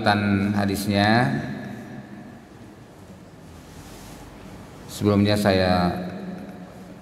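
A man speaks calmly into a microphone, with a slight room echo.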